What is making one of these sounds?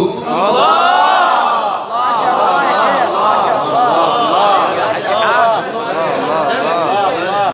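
A man chants with feeling into a microphone, amplified through loudspeakers in an echoing hall.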